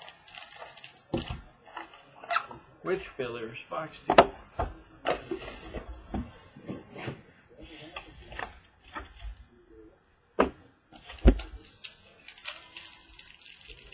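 Hands rustle and handle packaging up close.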